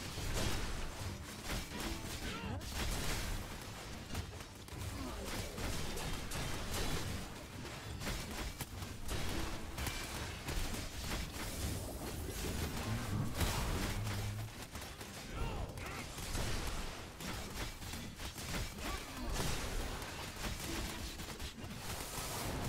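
Game combat effects whoosh and clash rapidly.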